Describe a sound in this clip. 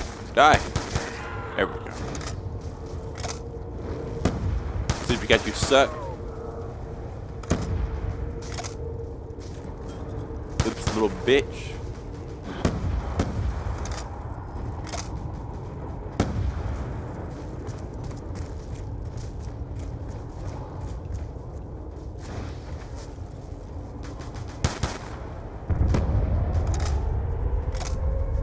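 Gunshots crack in a game.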